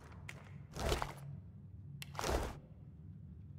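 Short bursts of magic whoosh and crackle.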